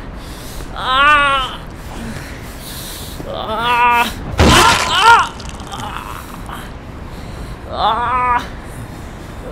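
A young man wails and cries out in anguish.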